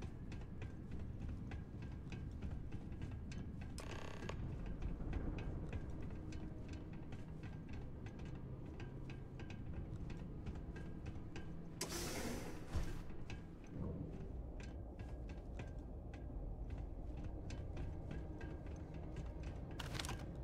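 Footsteps thud steadily on a metal floor.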